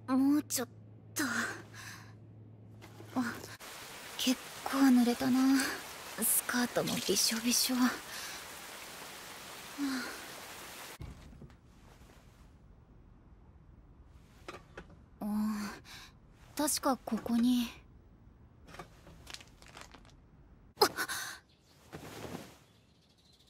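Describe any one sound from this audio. A young woman speaks softly and breathily.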